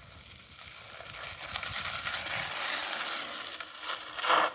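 A bicycle freewheel clicks as a rider passes close by.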